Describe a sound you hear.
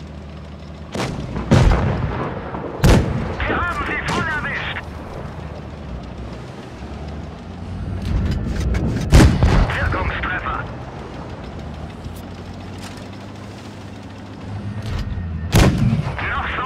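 A tank cannon fires with loud booming shots.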